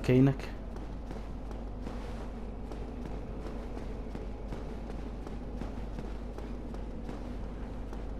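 Armour clanks and rattles with each step.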